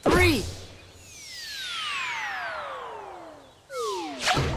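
A cartoon whistle falls in pitch as something flies through the air.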